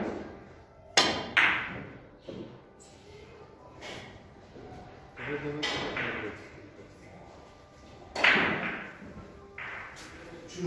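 Billiard balls clack sharply against each other, ringing in an echoing room.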